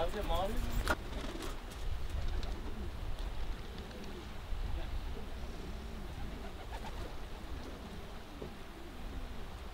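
A bird calls with low croaks close by.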